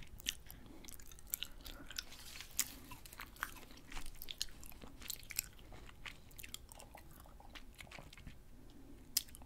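Wet, sticky mouth sounds click and smack close to a microphone.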